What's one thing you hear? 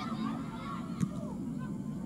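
A ball is kicked hard with a dull thump.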